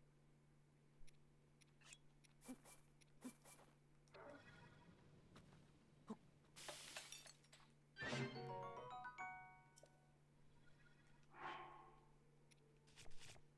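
Short menu clicks and chimes tick in quick succession.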